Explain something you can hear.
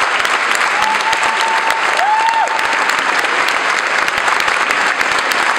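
A large group claps hands in a room with some echo.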